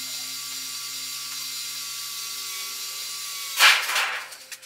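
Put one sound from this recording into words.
A cordless drill whirs steadily.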